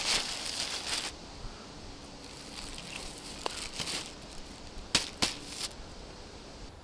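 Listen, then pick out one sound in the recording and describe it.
A plastic sheet crinkles and rustles.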